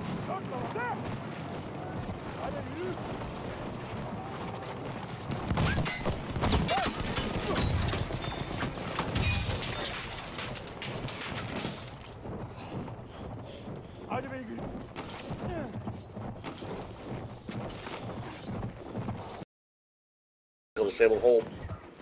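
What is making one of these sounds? A horse gallops, its hooves thudding on dirt.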